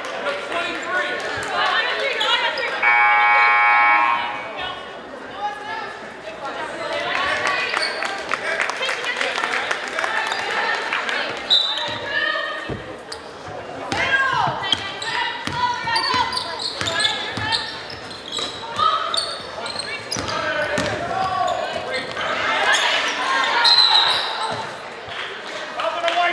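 A crowd in a large echoing gym chatters and cheers throughout.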